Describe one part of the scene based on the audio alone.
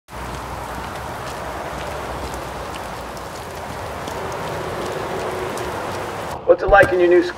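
Rain patters steadily on wet pavement.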